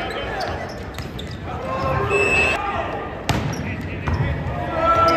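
A volleyball is spiked and hit with sharp slaps in a large echoing hall.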